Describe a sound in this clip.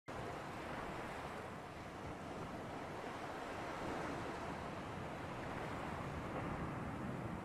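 Ocean waves wash and splash steadily.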